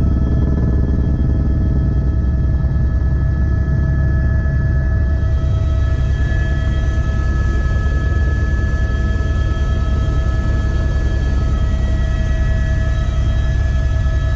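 A helicopter engine and rotor drone loudly and steadily from inside the cabin.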